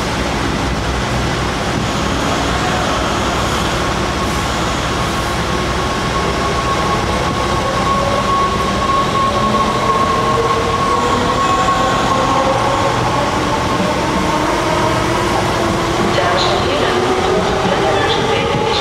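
Train wheels rumble and squeal on the rails.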